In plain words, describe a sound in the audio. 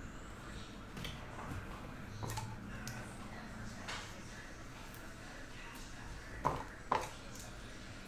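Trading cards slide and tap against a table.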